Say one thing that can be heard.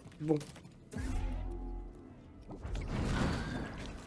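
A lightsaber hums and buzzes.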